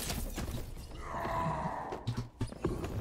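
A magic spell hums and crackles.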